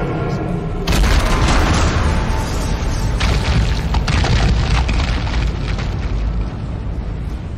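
A huge creature roars loudly.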